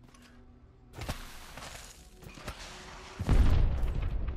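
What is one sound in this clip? Feet slide down a sandy slope with a rushing hiss.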